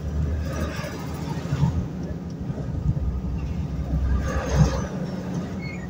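A truck passes by close with a loud rush.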